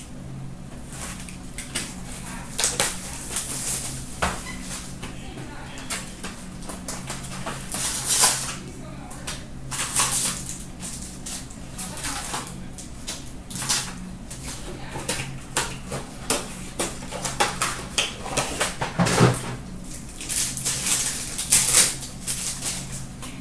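Card packs and cardboard boxes rustle and tap as they are handled.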